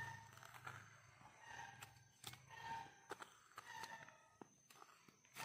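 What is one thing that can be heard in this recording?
A knife shaves and scrapes thin curls from a piece of wood.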